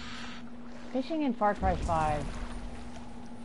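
A seagull cries close by.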